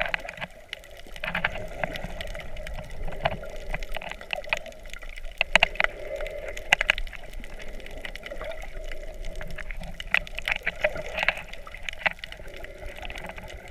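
Air bubbles burble and crackle underwater.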